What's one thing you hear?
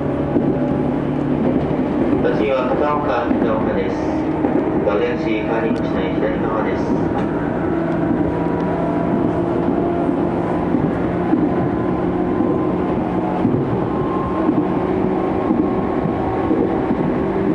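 Steel wheels rumble on the rails beneath an electric train carriage.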